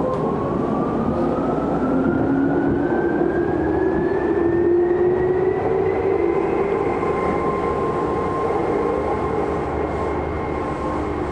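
An electric commuter train's wheels rumble on the rails.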